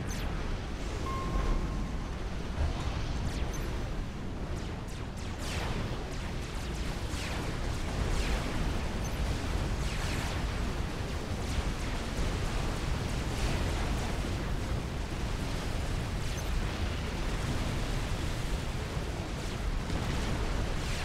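Laser weapons fire and blasts boom in a battle.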